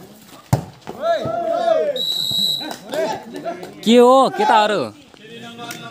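Young men shout and call out loudly outdoors.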